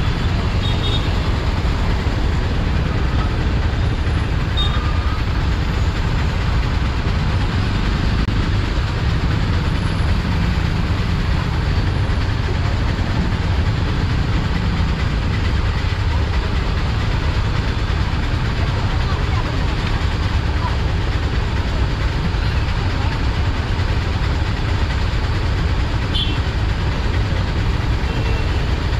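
A motorcycle engine idles close by with a low, steady rumble.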